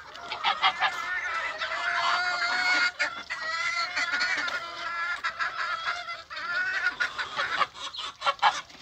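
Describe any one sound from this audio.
Ducks quack loudly and repeatedly close by.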